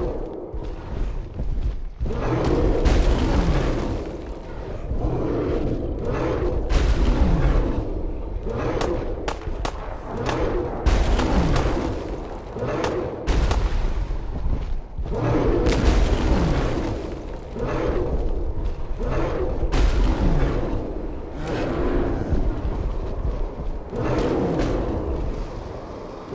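Large creatures roar and growl as they fight.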